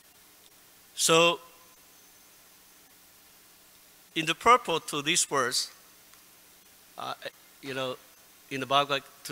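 An elderly man speaks calmly into a microphone in short bursts.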